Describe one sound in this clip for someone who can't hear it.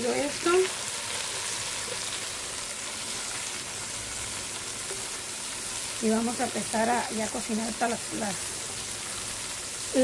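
A metal ladle scrapes and stirs in a clay pot.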